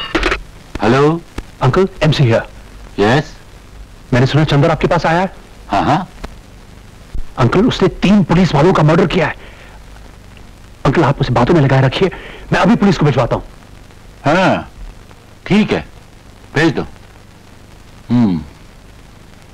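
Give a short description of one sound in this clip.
A middle-aged man speaks tensely into a telephone.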